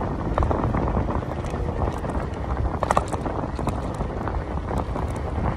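Footsteps scrape on a paved path.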